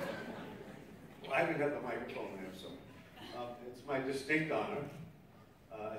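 A man speaks formally through a microphone in a large echoing hall.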